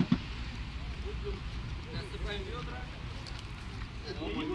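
Adult men and women talk casually nearby, outdoors.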